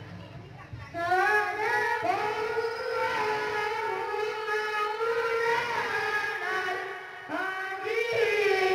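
A group of young children sing together through a microphone.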